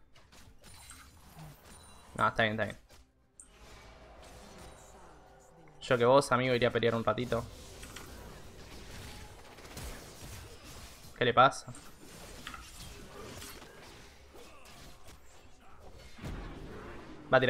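Game sound effects of spells and blows clash in a fantasy battle.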